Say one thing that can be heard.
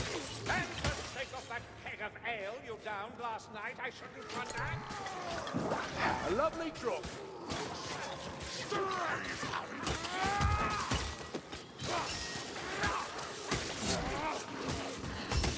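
Melee weapons swing and strike with heavy thuds.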